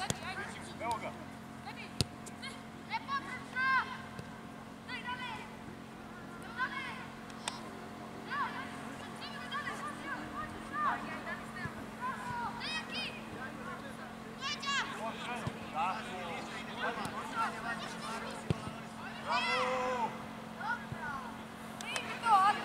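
Children shout to each other outdoors.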